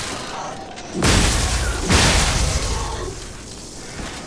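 A heavy weapon strikes a body with loud crunching blows.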